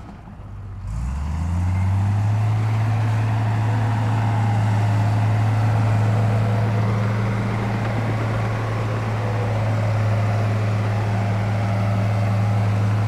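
A bulldozer engine drones steadily.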